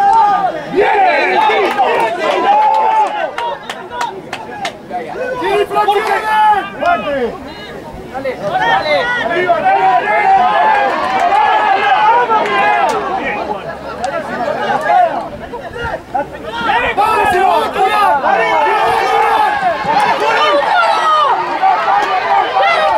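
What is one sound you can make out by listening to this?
Spectators nearby cheer and shout.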